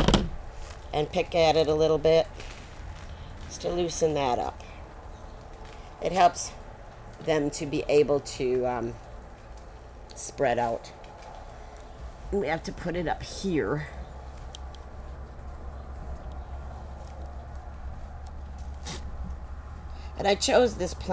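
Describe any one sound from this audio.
An older woman speaks calmly and clearly, close to a microphone.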